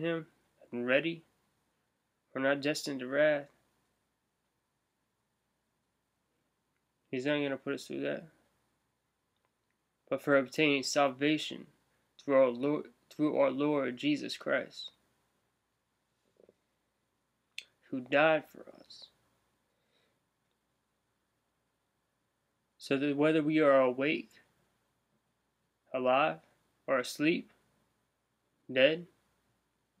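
A man talks calmly and close up, in short bursts with pauses.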